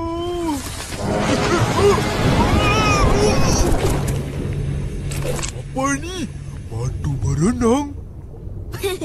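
A cartoon character speaks in a squeaky, animated voice.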